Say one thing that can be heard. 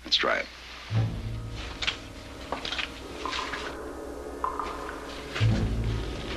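Footsteps shuffle on gravel and rustle nearby.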